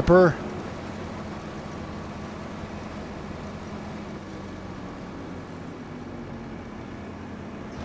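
A harvester engine hums steadily.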